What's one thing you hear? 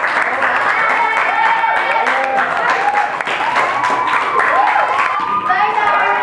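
Teenagers laugh and cheer together nearby.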